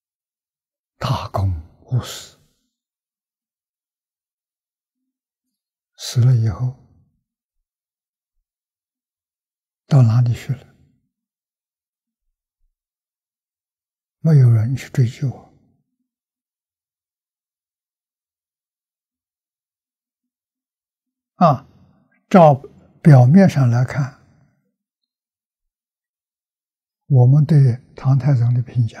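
An elderly man speaks calmly and slowly into a close microphone, with long pauses.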